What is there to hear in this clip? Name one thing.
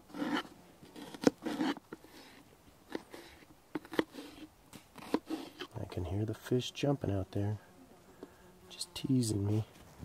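A knife scrapes and taps against a metal pan.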